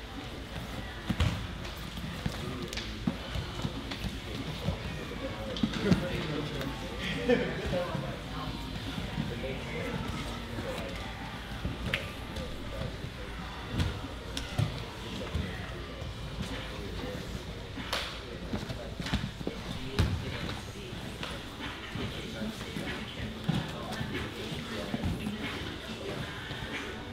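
Men and women chat softly in the background of a large echoing hall.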